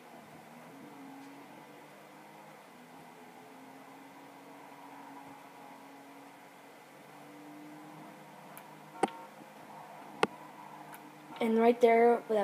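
A car engine hums steadily from a television speaker.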